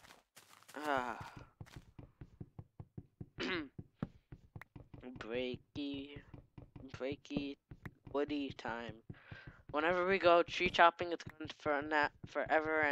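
A block of wood is struck with rapid, repeated knocks.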